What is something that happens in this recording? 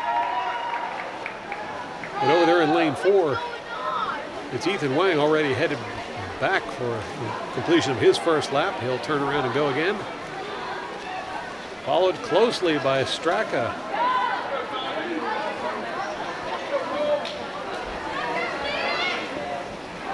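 Teammates cheer and shout loudly in an echoing indoor pool hall.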